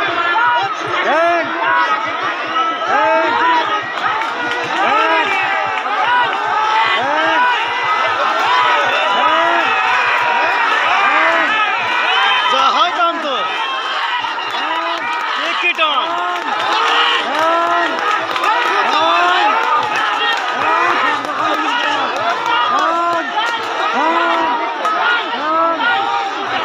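A large crowd of spectators cheers and shouts loudly outdoors.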